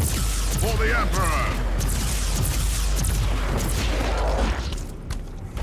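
A weapon fires in bursts.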